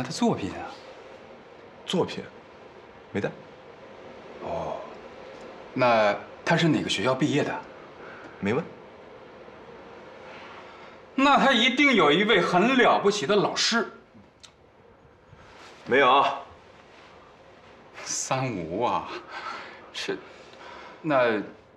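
A middle-aged man speaks questioningly nearby.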